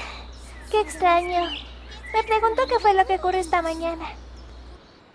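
A young girl speaks calmly and briefly.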